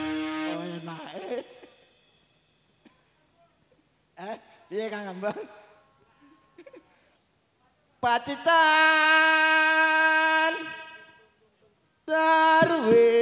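A woman sings through loudspeakers.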